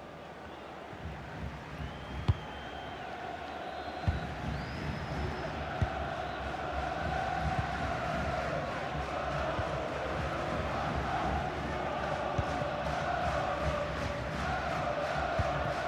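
A large stadium crowd murmurs and chants steadily, slowly growing louder.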